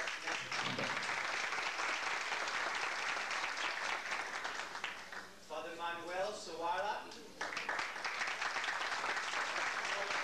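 A group of people clap their hands in applause.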